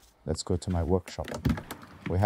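A key rattles and clicks in a door lock.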